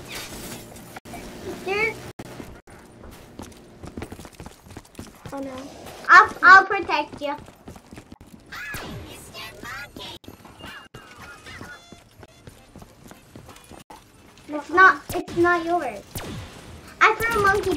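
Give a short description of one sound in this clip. Young boys talk and exclaim excitedly close by.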